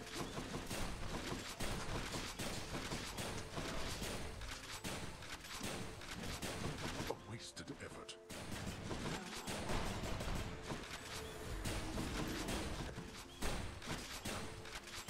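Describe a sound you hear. Sword slashes and magic blasts clash and burst in quick succession.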